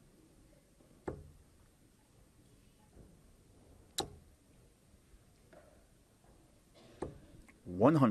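Darts thud sharply into a dartboard.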